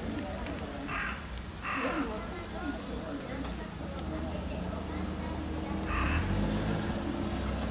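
Leaves and grass rustle softly under an animal's steps.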